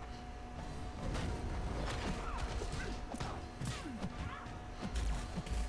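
Punches and energy blasts thud and crackle in a video game fight.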